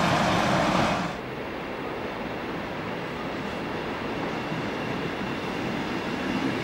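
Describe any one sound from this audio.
Train coaches roll slowly along the tracks.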